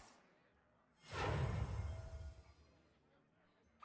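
A game plays a bright magical whoosh.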